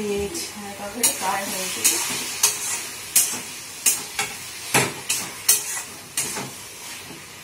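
A spatula scrapes and clinks against a metal pan.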